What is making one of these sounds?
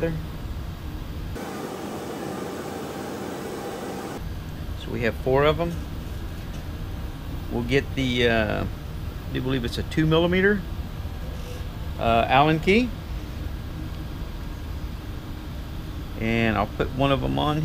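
Small metal parts click softly between fingers.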